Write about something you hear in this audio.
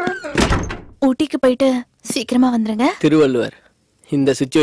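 A young woman speaks tensely nearby.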